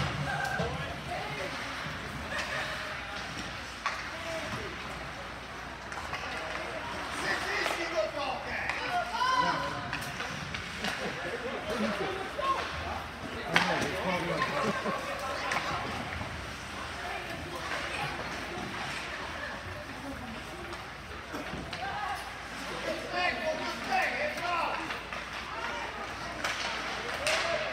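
Skates scrape across the ice of an echoing rink.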